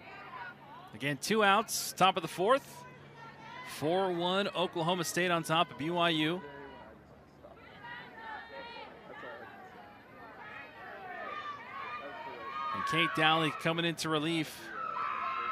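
A crowd cheers and chants.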